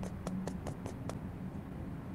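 Footsteps patter quickly on a metal floor.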